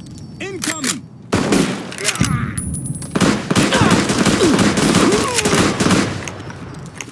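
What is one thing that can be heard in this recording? A machine gun fires loud bursts with echoing booms.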